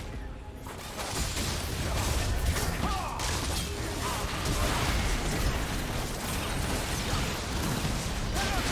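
Game spell blasts and impacts crackle and thump in a busy fight.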